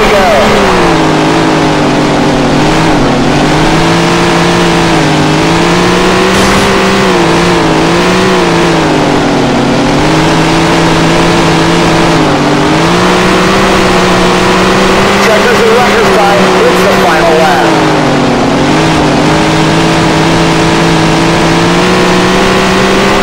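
A race car engine roars steadily, its pitch rising and falling as it speeds up and slows.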